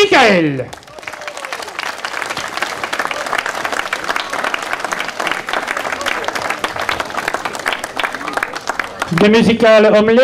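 A crowd applauds.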